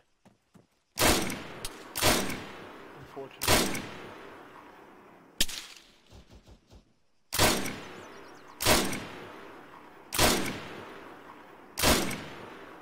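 Rifle shots crack and echo across open ground.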